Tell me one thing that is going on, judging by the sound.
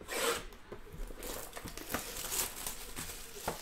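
Plastic wrap crinkles as it is torn off a box.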